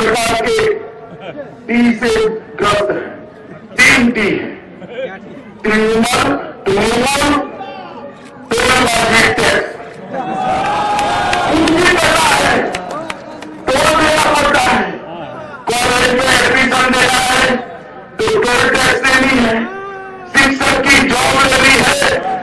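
A man makes a forceful speech through a microphone and loudspeakers.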